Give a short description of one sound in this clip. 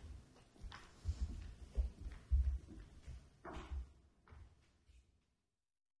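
Footsteps walk across a wooden stage.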